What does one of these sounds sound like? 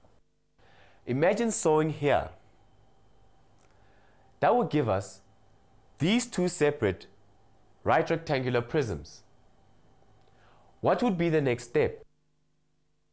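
A young man speaks calmly and clearly, explaining, close to a microphone.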